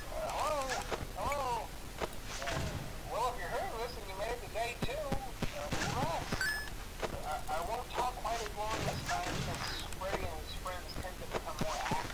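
Static hisses and crackles from a monitor.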